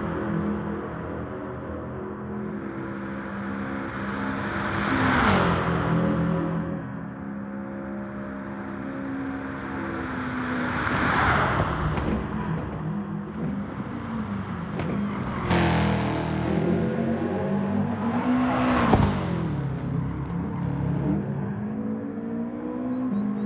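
A racing car engine roars, revving up and down through gear changes.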